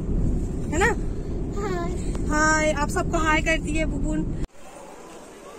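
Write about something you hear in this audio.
A car's engine rumbles low inside the car.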